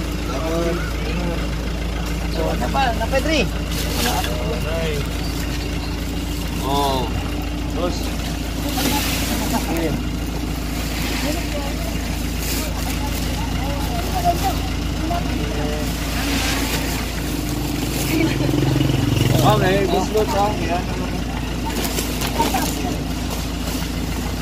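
Plastic bags rustle as they are handed over.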